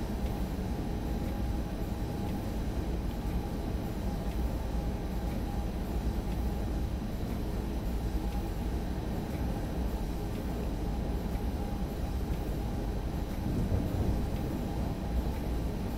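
A windscreen wiper swishes back and forth.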